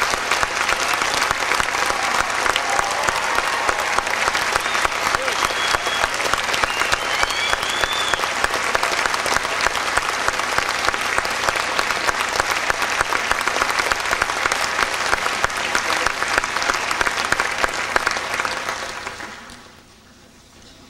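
An audience applauds steadily in a large hall, then the clapping fades away.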